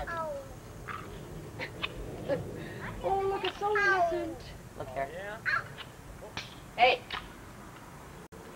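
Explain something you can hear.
Young toddlers babble and chatter close by.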